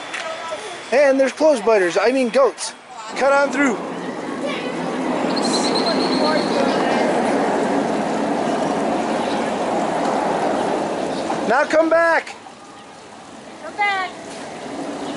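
A young child calls out excitedly nearby.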